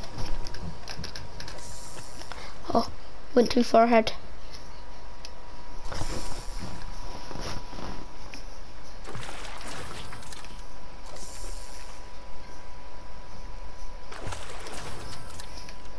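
A fishing line splashes into water.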